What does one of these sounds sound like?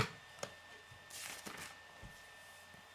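A paper page rustles as it turns.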